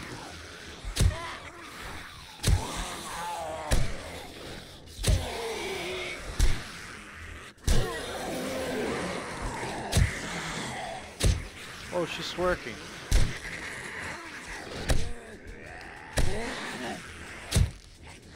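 A club strikes flesh with heavy thuds, again and again.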